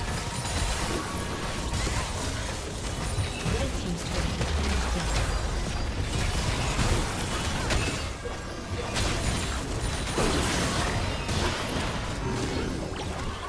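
Sharp hits and impacts clash repeatedly.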